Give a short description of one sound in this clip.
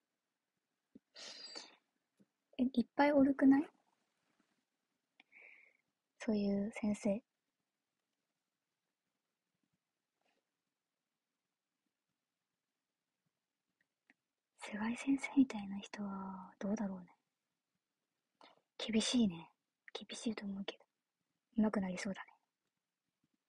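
A young woman talks calmly and close to a microphone, with pauses.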